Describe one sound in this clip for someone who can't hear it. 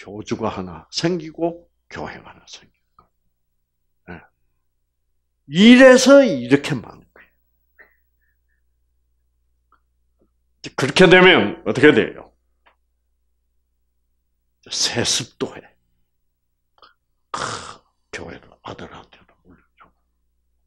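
An elderly man speaks with animation through a headset microphone, in bursts separated by pauses.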